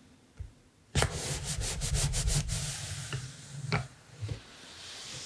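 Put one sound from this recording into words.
Paper rustles and crinkles under a hand.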